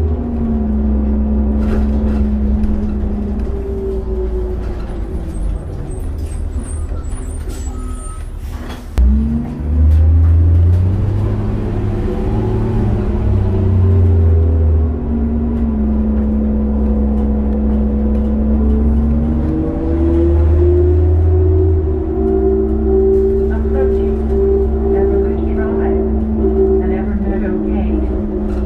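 A vehicle engine hums steadily from inside, rising and falling in pitch as it speeds up and slows down.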